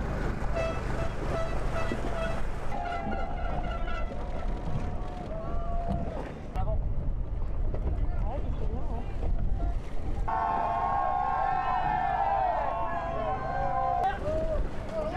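Boat engines rumble low on the water.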